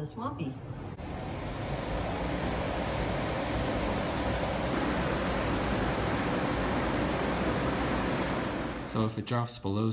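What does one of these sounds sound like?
An air conditioner hums and blows steadily.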